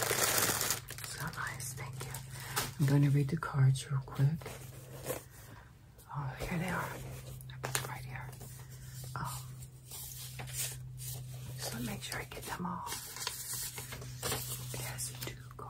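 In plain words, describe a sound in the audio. An older woman speaks calmly and close to a microphone.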